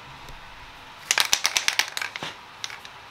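A spray can rattles as it is shaken.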